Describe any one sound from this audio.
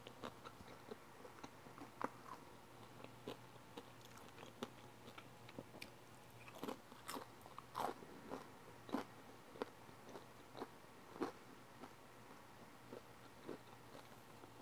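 A young woman chews crunchy food with wet, smacking mouth sounds close to a microphone.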